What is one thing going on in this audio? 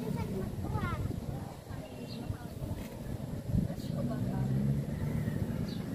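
A young woman and a girl chatter nearby.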